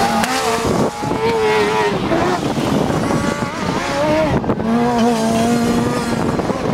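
A rally car engine roars and revs hard nearby, then fades as the car drives off.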